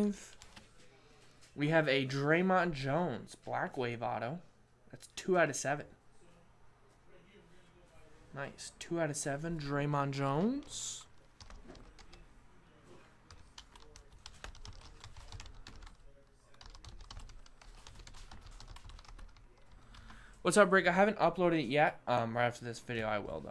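Plastic card cases click and rattle in hands.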